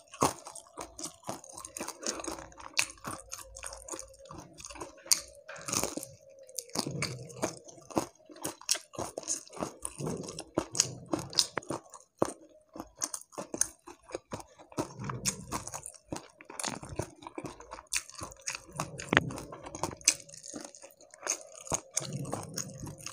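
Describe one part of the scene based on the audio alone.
Crispy fried fish skin crackles as it is torn by hand.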